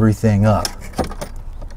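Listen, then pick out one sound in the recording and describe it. An older man speaks briefly, close by.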